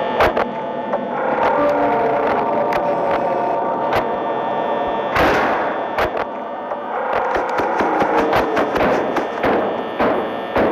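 Static hisses and crackles in short bursts.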